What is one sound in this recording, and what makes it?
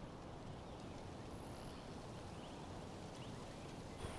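A man breathes heavily nearby.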